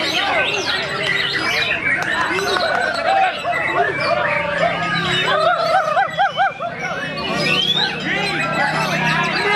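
A white-rumped shama sings a rich, varied song.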